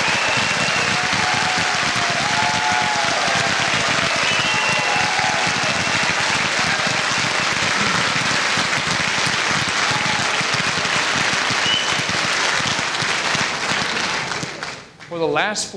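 A crowd applauds loudly.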